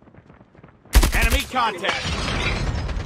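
A rifle fires a rapid, loud burst of shots.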